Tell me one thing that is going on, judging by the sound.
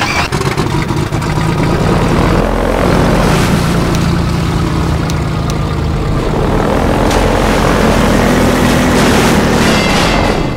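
Tyres rumble over rough, wet ground.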